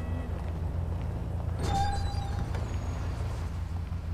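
A bus drives past with a low engine rumble.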